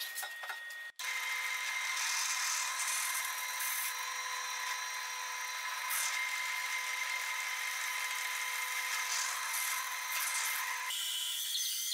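A drill press whirs steadily as it bores into wood.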